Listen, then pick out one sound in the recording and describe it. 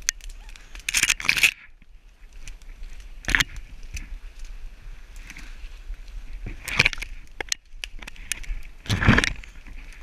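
Dry twigs snap and crack underfoot.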